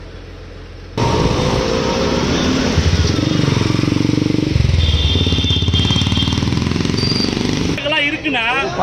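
Motorcycle and truck engines run in passing traffic.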